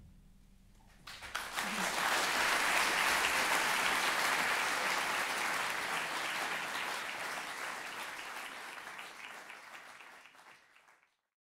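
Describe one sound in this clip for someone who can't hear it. An audience applauds loudly in a large hall.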